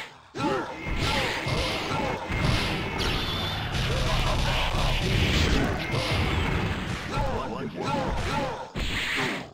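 Energy blasts whoosh and crackle loudly.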